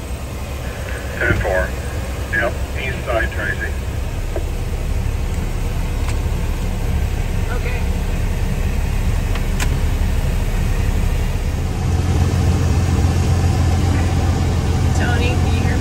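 A vehicle's diesel engine rumbles steadily from inside the cab.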